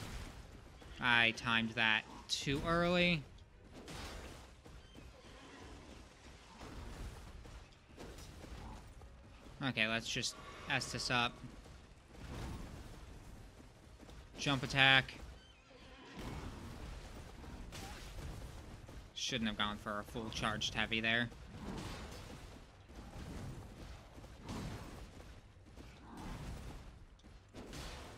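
Heavy weapons swing and clash.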